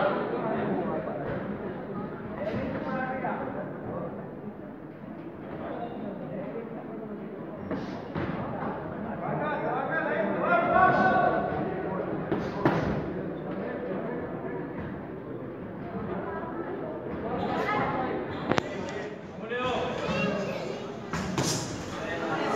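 A crowd chatters and shouts in an echoing hall.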